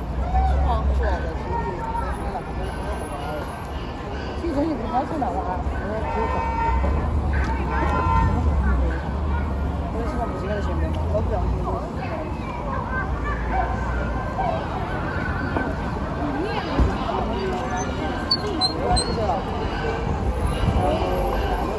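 A crowd chatters all around outdoors on a busy street.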